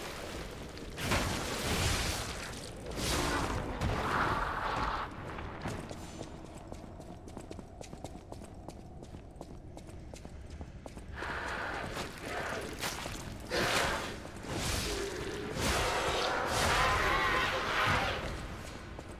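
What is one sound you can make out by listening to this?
Blades clash and swoosh in a fight.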